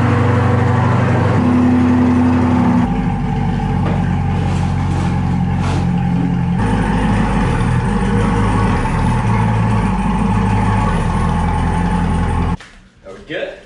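A sports car engine idles with a deep, steady rumble, then cuts off.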